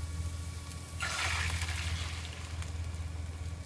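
Beaten eggs sizzle as they pour into a hot pan.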